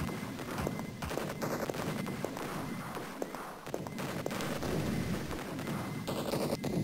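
A plasma gun fires rapid crackling energy blasts.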